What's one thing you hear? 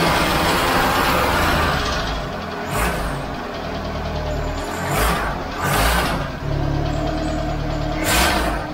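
An old car engine idles roughly and unevenly.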